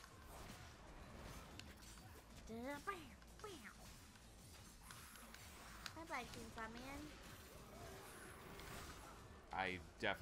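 Blades slash and strike with sharp metallic hits.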